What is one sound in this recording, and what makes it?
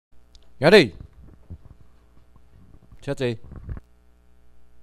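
A man calls out loud, drawn-out commands.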